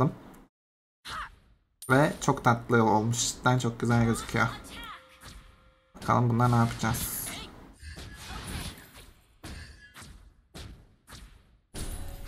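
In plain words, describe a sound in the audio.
Game sound effects of magic blasts and hits crackle in quick bursts.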